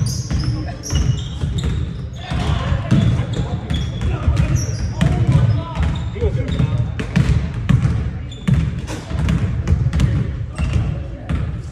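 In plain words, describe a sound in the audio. Basketballs bounce on a wooden gym floor, echoing through a large hall.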